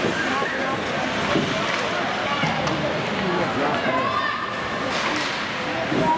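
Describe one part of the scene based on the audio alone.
Spectators chatter and call out in a large echoing rink.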